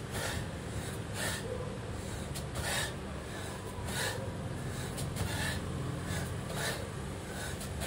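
Bare feet shuffle and thump on a floor mat.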